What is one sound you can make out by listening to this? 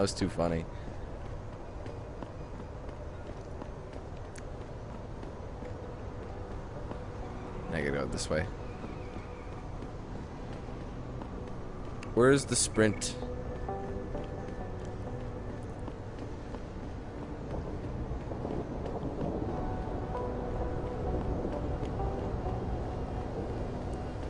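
Footsteps walk softly on pavement.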